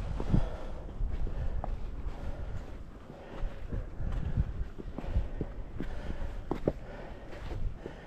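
Footsteps crunch on gritty rock.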